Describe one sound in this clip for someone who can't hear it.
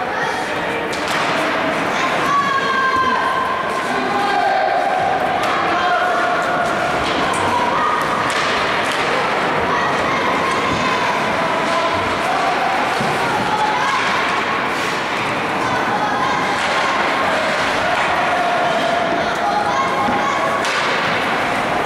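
Young players shout to each other in a large echoing rink.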